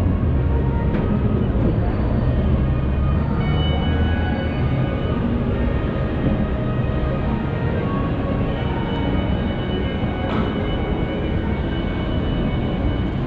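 A low murmur and hum fill a large echoing space.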